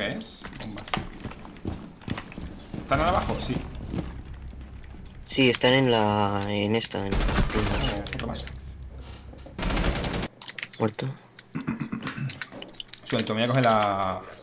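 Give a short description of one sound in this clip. Video game gunshots crack in quick bursts.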